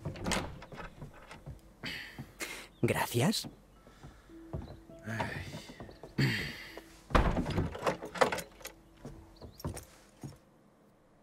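A young man speaks quietly up close.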